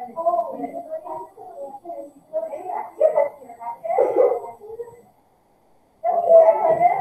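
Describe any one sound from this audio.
A woman speaks calmly into a computer microphone, with short pauses.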